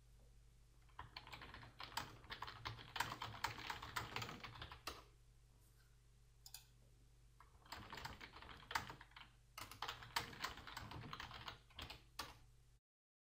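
Keyboard keys click quickly as someone types.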